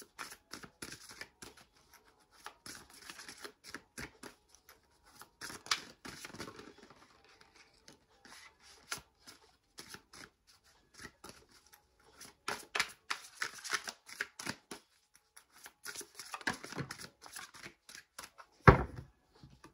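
Playing cards riffle and shuffle with quick crisp flicks.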